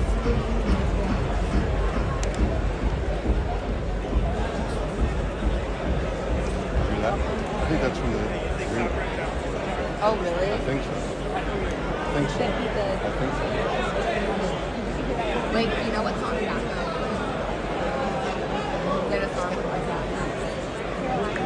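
A large crowd murmurs and shouts in a big echoing arena.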